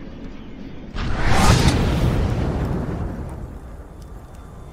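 A loud icy blast bursts and slowly fades.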